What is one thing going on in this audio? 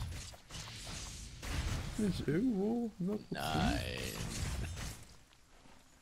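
Magic spells crackle and whoosh in bursts.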